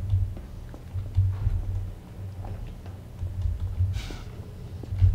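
Footsteps thud on metal stairs.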